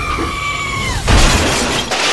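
A toy train rattles along a track.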